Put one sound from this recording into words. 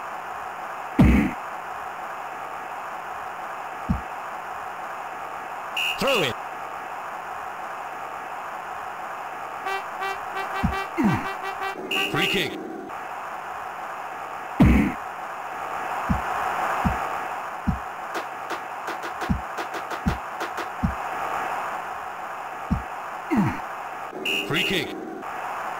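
A ball is kicked with short dull thuds.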